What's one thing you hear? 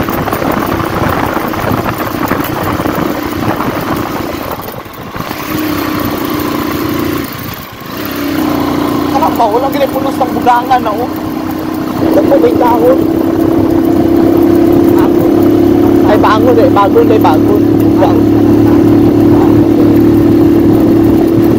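A motorcycle engine hums steadily while riding, briefly dropping off between gear changes.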